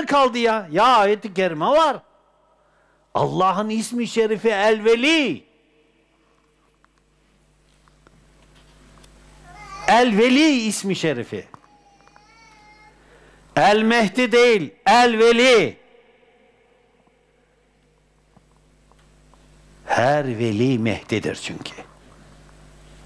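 An elderly man speaks with animation into a clip-on microphone, in bursts with pauses.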